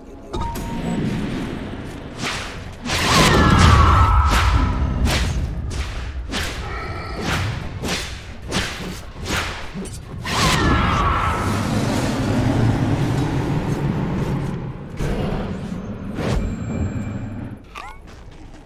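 Magic blasts and hits crackle and boom in quick succession.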